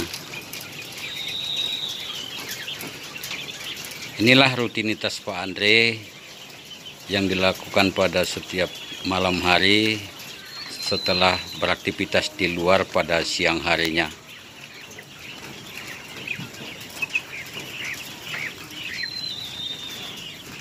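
Small birds chirp softly nearby.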